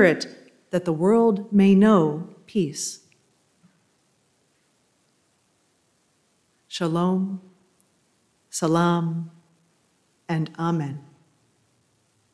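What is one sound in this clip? A woman speaks calmly into a microphone, with long pauses.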